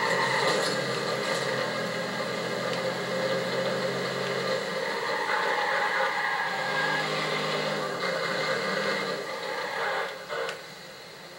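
A car engine roars as the car speeds along.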